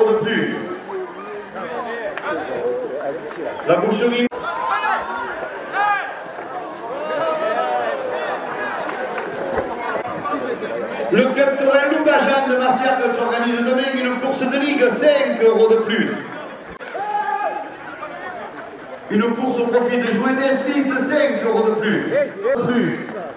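A large crowd chatters and shouts in an open arena.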